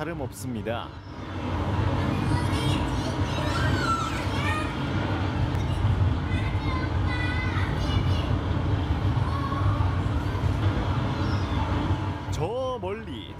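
A simulator ride rumbles low and steadily.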